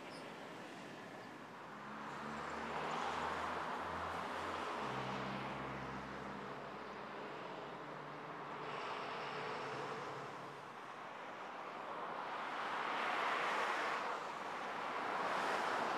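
Cars and trucks drive past on a busy road with a steady rush of tyres.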